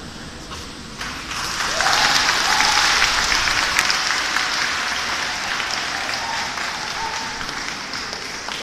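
An audience claps loudly in a large echoing hall.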